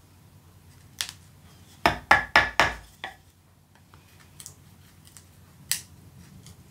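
Wooden sticks knock together sharply a few times.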